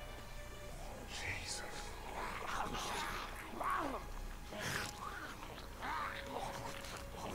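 Several creatures groan and moan nearby.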